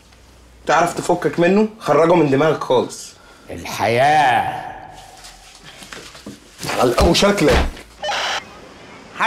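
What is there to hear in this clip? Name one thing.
Several men talk over each other with animation, close by.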